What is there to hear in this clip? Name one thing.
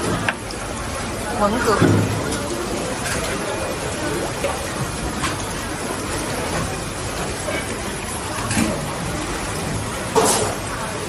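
A crowd murmurs and chatters in a busy, echoing hall.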